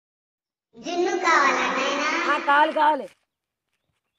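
A young girl speaks loudly and with animation, close by.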